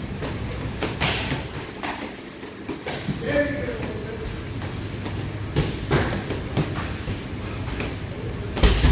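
Boxing gloves smack sharply against pads in quick bursts.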